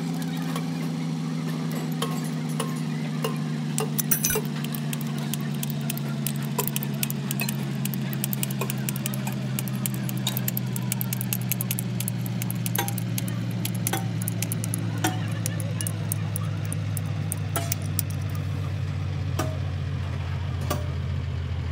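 Metal tools click and tap against a bolt.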